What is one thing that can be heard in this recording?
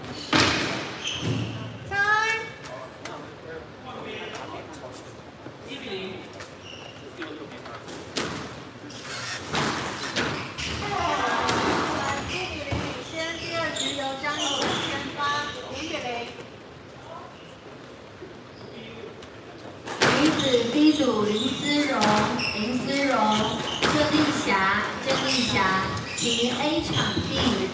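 A squash ball smacks sharply against walls and rackets in an echoing court.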